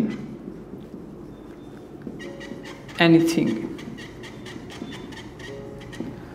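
A marker squeaks as it writes on a whiteboard.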